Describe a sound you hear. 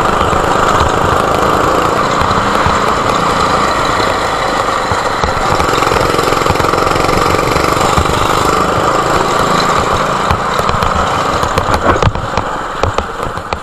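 A go-kart engine buzzes loudly and steadily up close.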